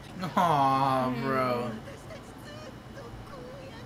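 A young man laughs softly nearby.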